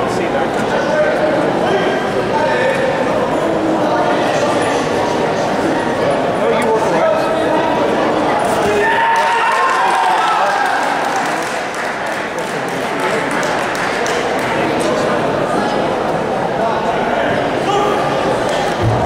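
A crowd of spectators chatters and cheers throughout a large echoing hall.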